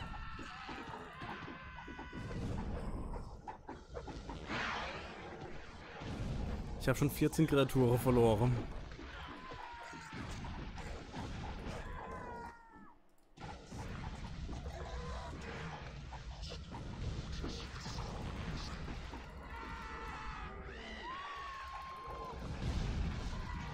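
Game creatures clash and screech in a noisy battle.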